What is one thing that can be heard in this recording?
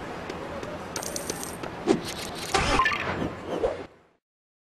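Game sound effects chime as coins are collected.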